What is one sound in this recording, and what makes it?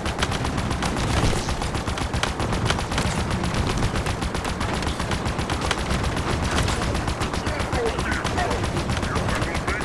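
Plasma shots fire in quick bursts.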